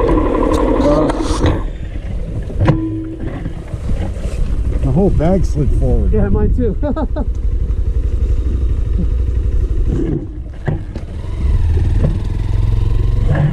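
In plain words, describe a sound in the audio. A motorcycle engine rumbles nearby.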